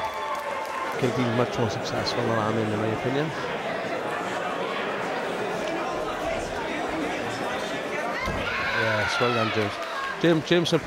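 A crowd cheers and shouts.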